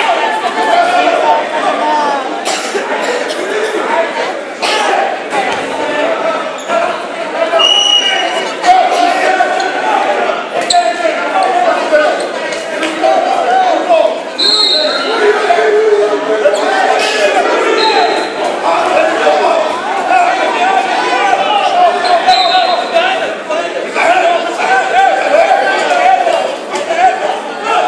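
A crowd in a large echoing gym chatters and cheers throughout.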